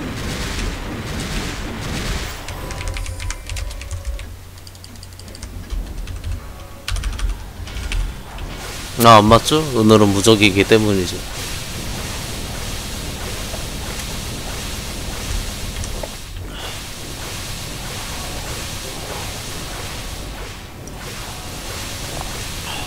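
Game battle effects clatter and chime steadily.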